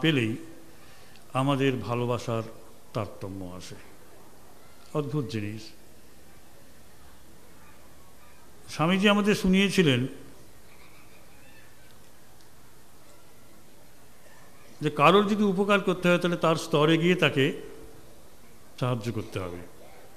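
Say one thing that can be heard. A middle-aged man speaks slowly and deliberately into a microphone, with long pauses.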